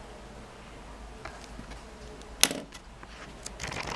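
A notebook slides and taps on a table.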